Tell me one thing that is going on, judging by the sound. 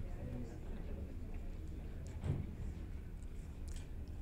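A woman speaks through a microphone in a large hall.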